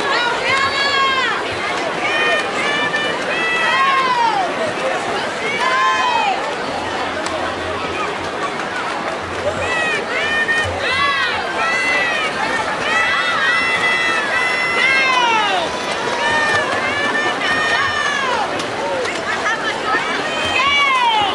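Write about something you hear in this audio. A crowd cheers and shouts loudly in a large echoing hall.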